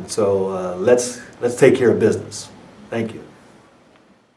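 A middle-aged man speaks calmly and clearly into a nearby microphone.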